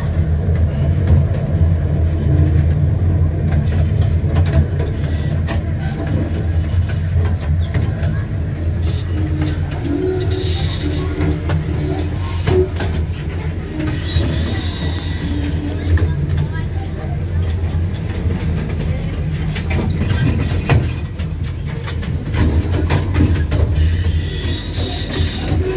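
A small train rumbles steadily along its track.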